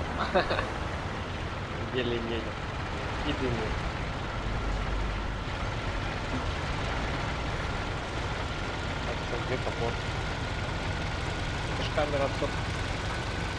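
A young man talks into a close microphone in short bursts.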